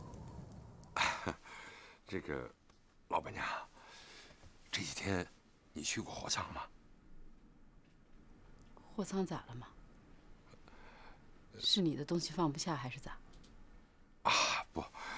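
A middle-aged man speaks in a low, questioning voice.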